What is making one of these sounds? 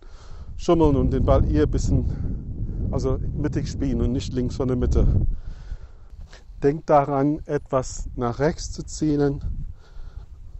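A man talks calmly, close by, outdoors.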